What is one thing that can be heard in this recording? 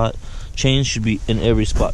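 Metal snow chains clink.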